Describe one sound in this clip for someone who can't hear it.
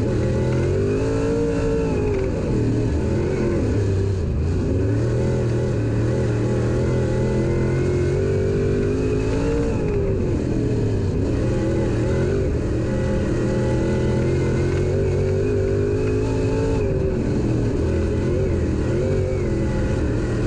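Tyres rumble and hiss over a dirt track.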